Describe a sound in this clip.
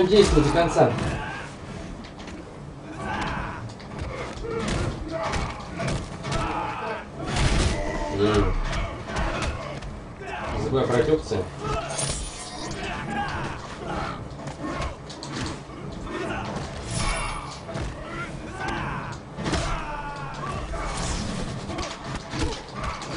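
Punches and kicks land with heavy thuds and smacks in a fighting game.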